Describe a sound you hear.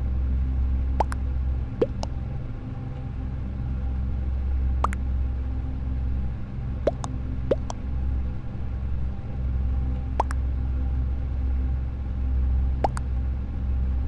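Short electronic blips chime now and then as votes are cast.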